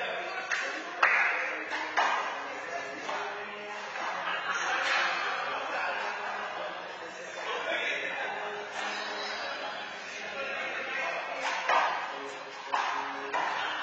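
A handball smacks hard against a wall in an echoing indoor court.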